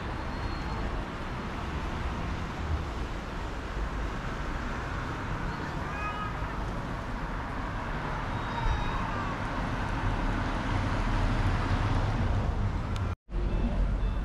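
Wind rumbles outdoors.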